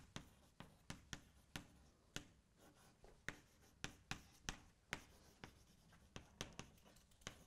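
Chalk taps and clicks sharply against a board.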